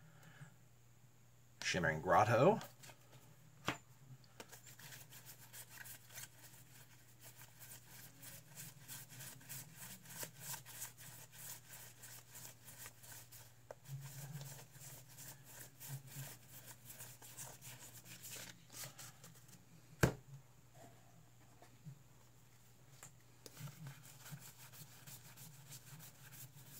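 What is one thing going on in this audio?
Playing cards flick and rustle against each other as they are shuffled through by hand.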